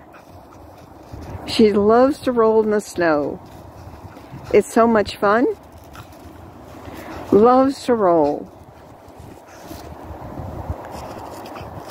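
Snow crunches and rustles as a dog rolls in it.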